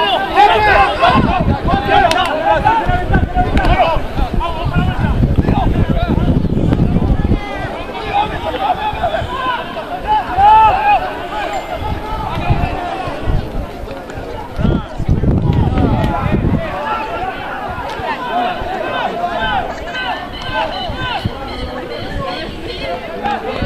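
Young men shout to one another outdoors, some distance away.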